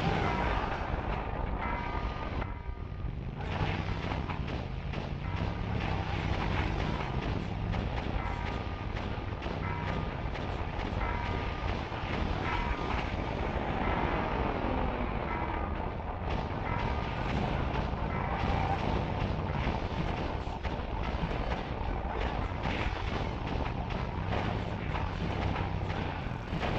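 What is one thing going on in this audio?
A motorcycle engine roars steadily.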